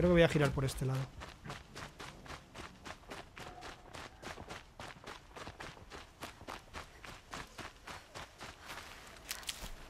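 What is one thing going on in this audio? Quick footsteps rustle through leafy undergrowth.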